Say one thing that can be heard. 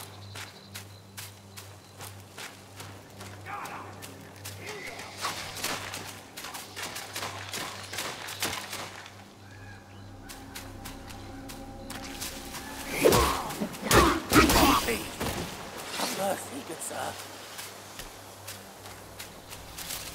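Footsteps crunch on leaves and grass as a figure runs through the forest.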